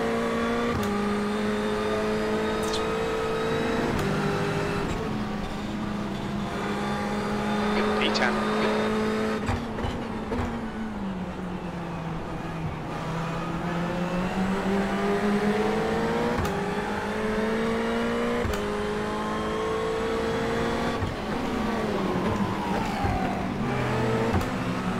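A racing car engine roars, revving up through the gears and dropping as it slows for corners.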